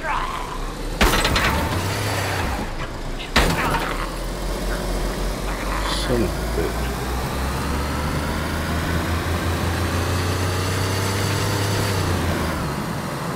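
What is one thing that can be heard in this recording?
A car engine hums and revs up as the car speeds up.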